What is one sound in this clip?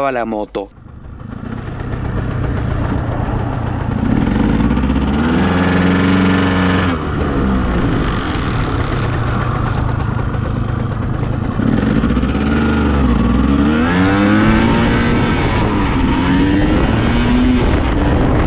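A motorcycle engine roars and revs up and down as the bike accelerates.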